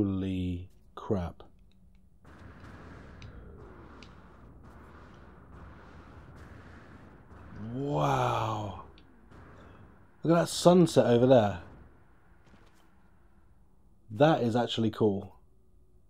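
A man speaks casually into a close microphone, in short bursts.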